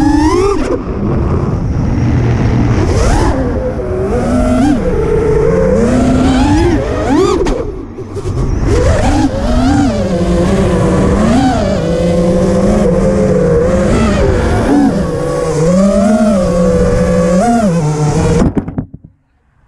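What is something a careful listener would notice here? A small drone's motors whine loudly, rising and falling in pitch as it swoops.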